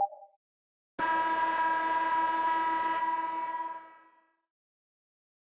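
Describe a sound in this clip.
A loud arena buzzer sounds, then fades away.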